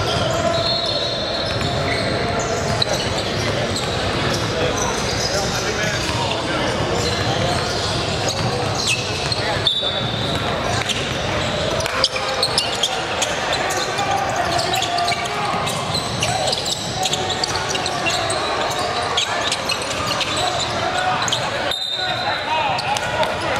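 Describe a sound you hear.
A crowd murmurs and chatters, echoing in a large hall.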